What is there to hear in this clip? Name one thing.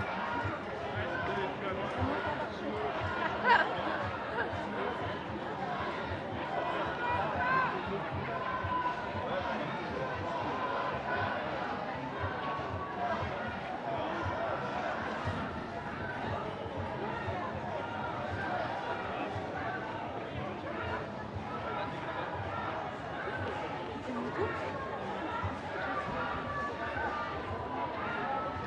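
Footsteps shuffle on pavement as a crowd walks.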